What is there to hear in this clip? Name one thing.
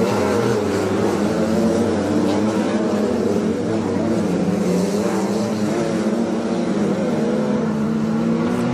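Several race car engines roar loudly, revving up and down.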